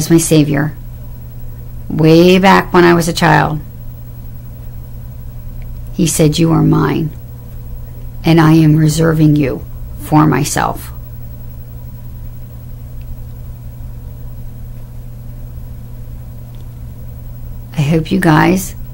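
A middle-aged woman talks calmly and close up, in short bursts with pauses.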